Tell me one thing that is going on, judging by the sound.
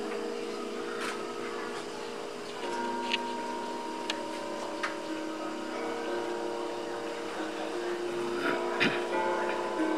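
Porcelain teacups clink softly on a table.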